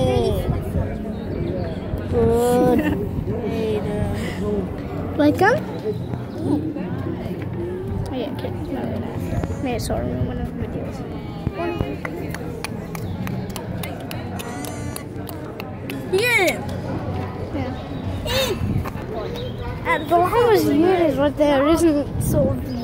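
A young girl talks close by with animation.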